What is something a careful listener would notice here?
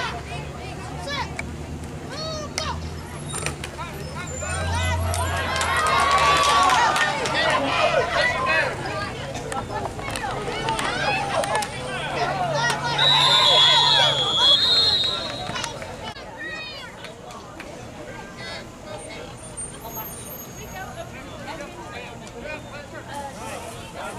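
A crowd of spectators cheers and shouts outdoors, rising to a loud roar and then settling.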